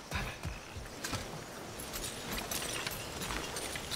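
A metal chain rattles and clinks.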